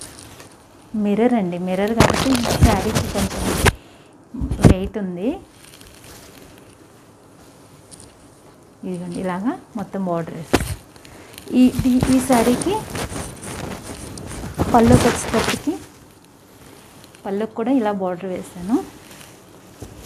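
A woman speaks close by in short bursts, with animation.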